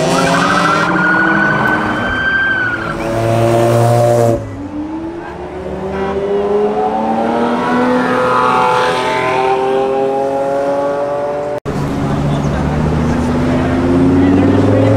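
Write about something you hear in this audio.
A sports car engine roars and revs loudly as it speeds past close by.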